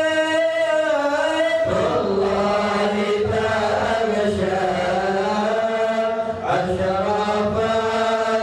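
A man sings a prayer through a microphone in an echoing hall.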